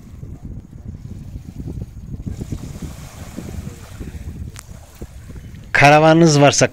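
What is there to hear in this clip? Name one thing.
Small waves lap gently in the dark.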